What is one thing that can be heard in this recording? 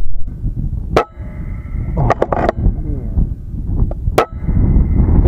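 A rifle fires with a sharp crack.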